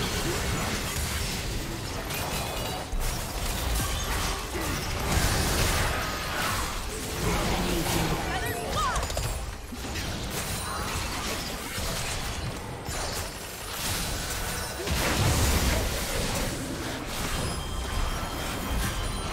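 Spell effects and attack impacts crackle and burst in a video game battle.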